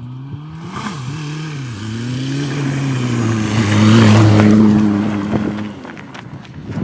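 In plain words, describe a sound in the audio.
A car engine roars louder as the car speeds closer on a dirt track.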